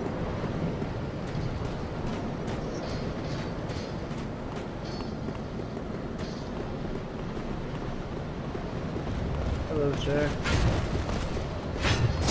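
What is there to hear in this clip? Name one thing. Armoured footsteps run over stone.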